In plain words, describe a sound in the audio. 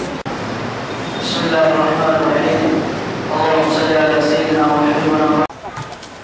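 A man chants a prayer in a slow melodic voice through a loudspeaker in an echoing hall.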